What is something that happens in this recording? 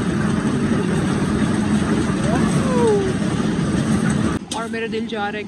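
A fairground ride rumbles along steadily.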